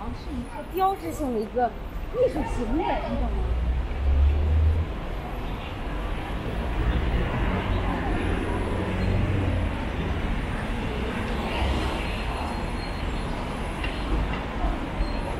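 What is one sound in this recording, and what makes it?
City traffic rumbles steadily on a busy street.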